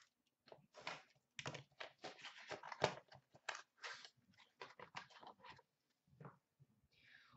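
Cardboard boxes rustle and tap as they are handled.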